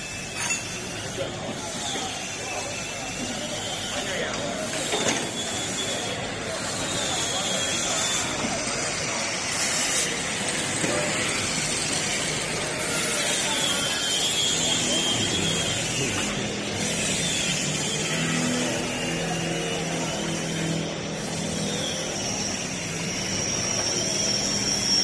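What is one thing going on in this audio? Tools clank and clatter in a large echoing hall.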